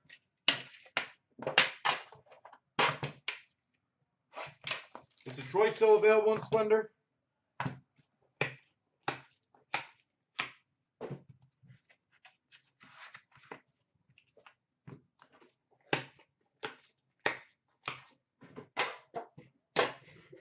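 Small plastic cases clack and tap.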